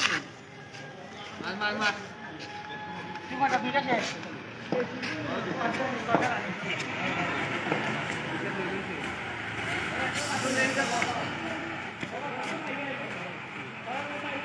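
Several young men talk and call out to one another outdoors.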